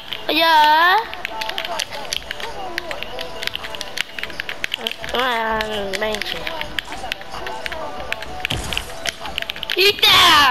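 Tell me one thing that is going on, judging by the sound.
Game building pieces snap into place in rapid clicks.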